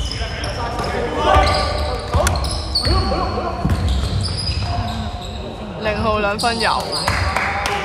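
Men shout to each other across the court.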